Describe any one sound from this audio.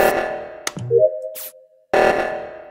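A short electronic chime sounds as a game task completes.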